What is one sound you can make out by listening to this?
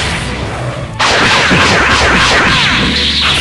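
Punches and kicks thud in quick succession.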